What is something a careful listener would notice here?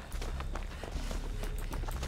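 Dry stalks rustle as someone pushes through them.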